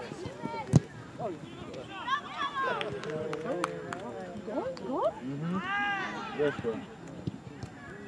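Young players shout and call to each other outdoors on an open field.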